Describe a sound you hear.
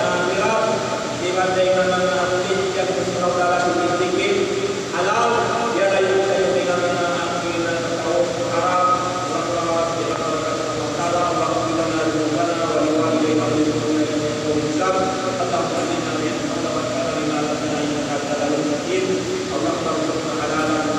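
An elderly man speaks calmly into a microphone, heard through a loudspeaker in an echoing hall.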